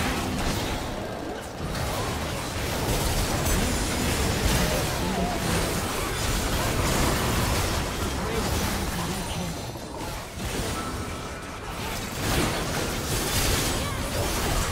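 Spell blasts and explosions burst in a fast fight.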